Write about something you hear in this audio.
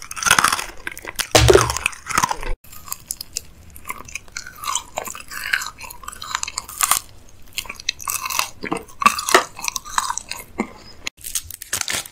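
A man crunches and chews a crispy snack bar close to a microphone.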